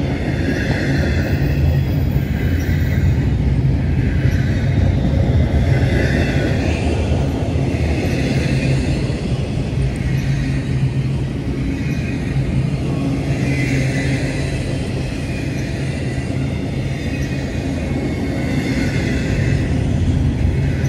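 Train wheels squeal and clack rhythmically on the rails.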